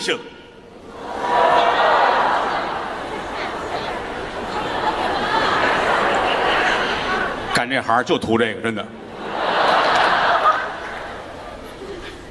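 A large audience laughs and applauds in a big hall.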